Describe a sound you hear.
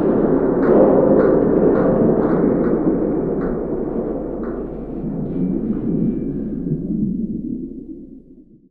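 Water churns with a dull, muffled underwater rumble that fades away toward the end.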